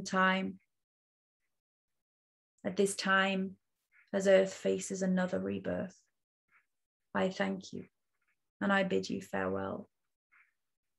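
A young woman speaks calmly and softly over an online call, with pauses.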